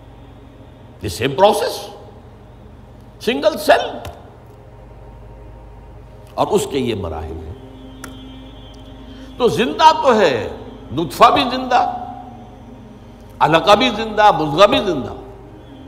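An elderly man speaks slowly and earnestly through a microphone, in short phrases with pauses.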